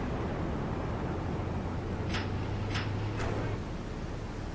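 A metal roller shutter rumbles as it rolls open.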